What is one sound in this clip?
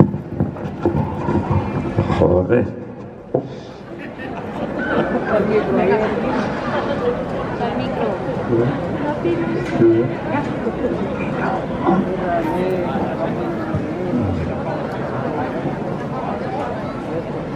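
A crowd of people chatters and talks outdoors.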